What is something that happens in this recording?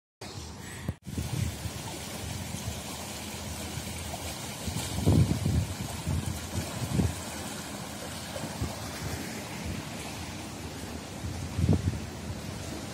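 A swollen river rushes and swirls steadily nearby.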